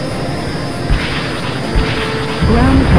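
Missiles launch with two sharp bursts.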